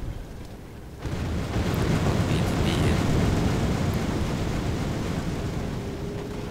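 A heavy explosion booms and rumbles away.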